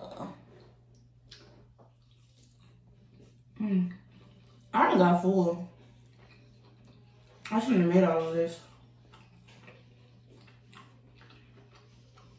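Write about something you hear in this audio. A young woman chews food softly and close up.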